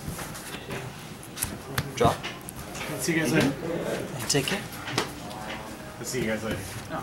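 Cards and plastic boxes tap and slide on a table.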